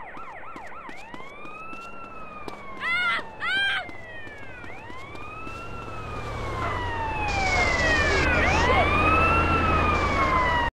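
A siren wails, rising and falling.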